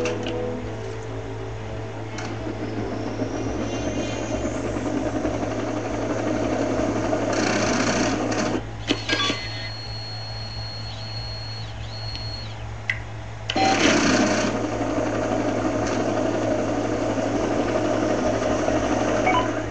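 A helicopter's rotors drone as it hovers and flies.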